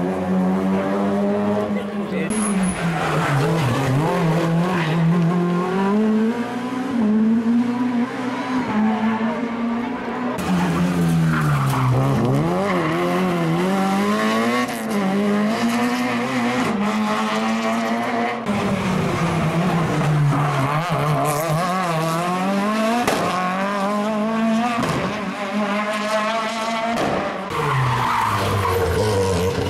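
A rally car engine revs hard and roars past close by, rising and falling in pitch as the gears change.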